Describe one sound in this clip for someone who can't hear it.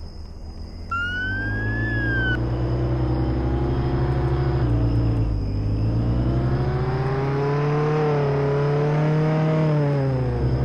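A heavy truck engine hums and rises and falls in pitch as it drives.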